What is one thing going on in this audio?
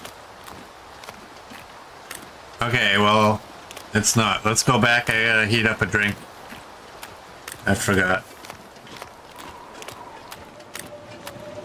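Footsteps crunch steadily on snowy ice.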